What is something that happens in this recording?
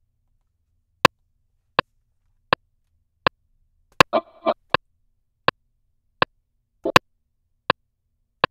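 A metronome ticks steadily.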